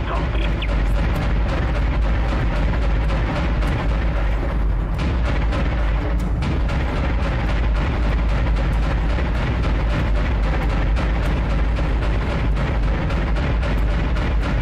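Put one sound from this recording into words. Heavy turret guns fire in rapid, steady bursts.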